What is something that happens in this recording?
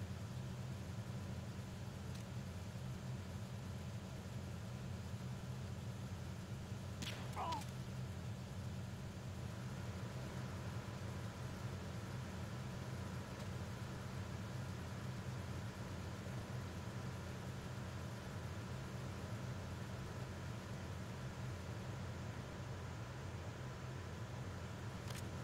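A low mechanical hum drones steadily throughout.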